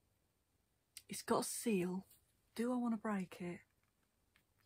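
A woman speaks softly and closely into a microphone.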